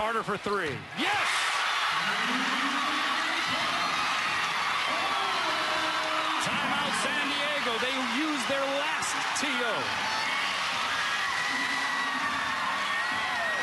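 A large crowd cheers and claps loudly in an echoing arena.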